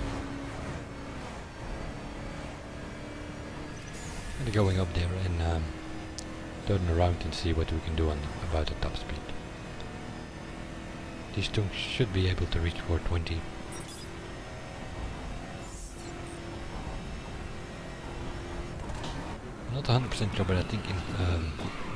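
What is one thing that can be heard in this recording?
A twin-turbo V8 supercar engine roars at high speed.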